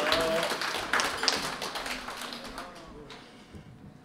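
A crowd chatters and murmurs in a large room.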